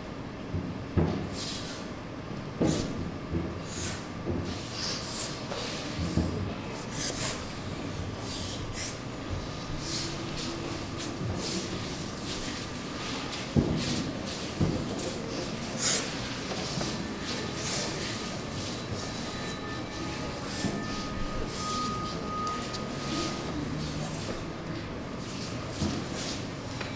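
Bare feet thud and shuffle on a wooden stage floor.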